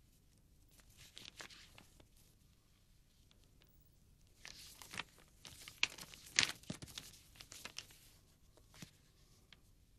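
Stiff album pages rustle and turn close by.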